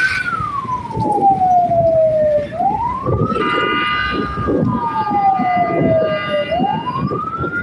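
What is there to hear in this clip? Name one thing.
A car engine hums steadily while driving through traffic.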